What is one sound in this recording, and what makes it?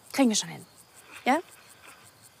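An elderly woman speaks through a phone.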